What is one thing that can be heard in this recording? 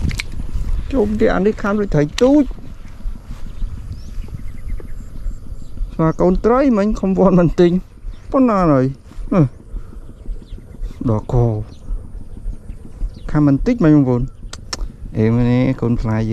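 A man talks close to the microphone, with animation.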